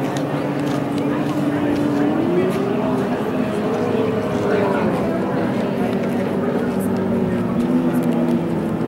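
A racing boat engine roars loudly, its pitch rising and falling as it speeds past.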